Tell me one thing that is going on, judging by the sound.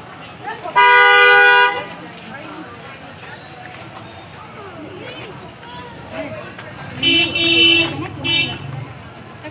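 Women in a crowd cry out loudly in long high calls.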